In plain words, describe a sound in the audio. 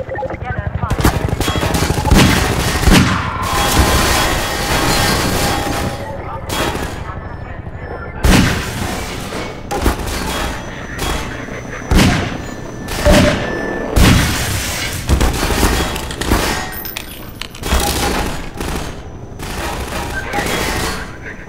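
A revolver fires loud, booming shots, one at a time.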